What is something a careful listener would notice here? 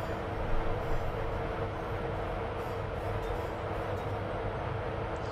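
A train's motors hum steadily.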